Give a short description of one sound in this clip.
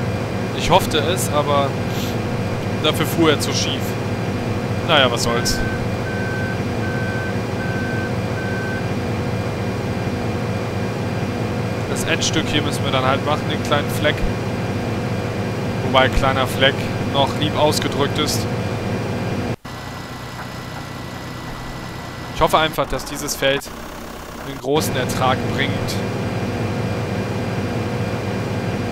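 A combine harvester's diesel engine drones.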